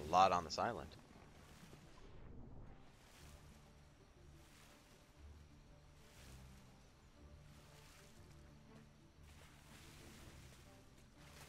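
Water splashes softly in gentle, repeated strokes.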